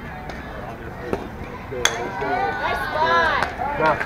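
A ball smacks into a catcher's mitt.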